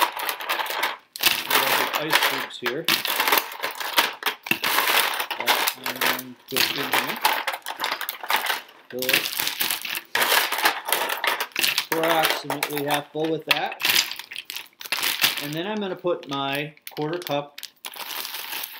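A plastic bag crinkles and rustles in a man's hands.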